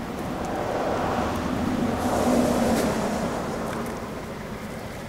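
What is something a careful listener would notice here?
Wind blows outdoors, rustling the grass.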